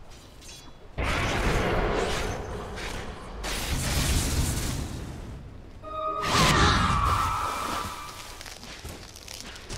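Game spell effects burst and whoosh in a loud fight.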